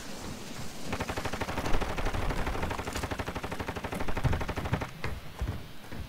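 Footsteps clang quickly on a metal roof.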